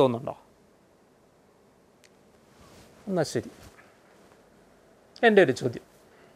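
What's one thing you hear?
A middle-aged man speaks calmly into a close microphone in short bursts.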